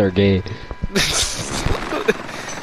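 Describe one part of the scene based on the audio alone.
A helicopter's rotor whirs loudly overhead.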